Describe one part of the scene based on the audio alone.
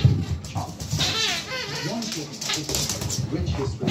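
A dog's claws patter on a wooden floor.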